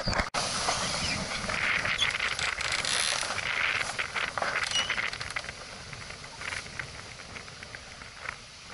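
Water splashes and laps against a small boat's hull.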